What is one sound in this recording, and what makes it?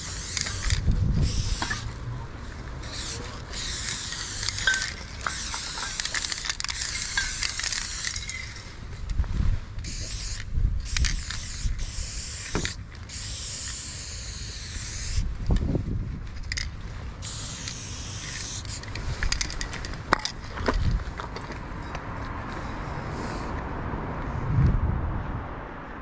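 A spray can hisses in short and long bursts close by.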